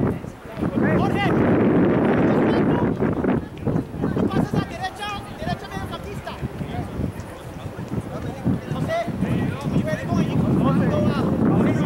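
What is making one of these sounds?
Young men shout to each other from across the field.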